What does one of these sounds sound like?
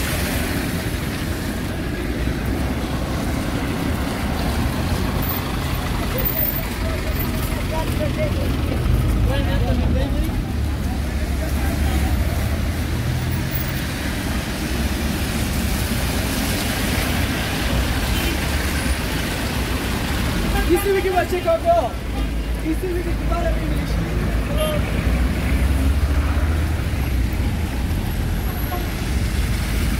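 Car and minibus engines rumble in slow traffic on a wet street outdoors.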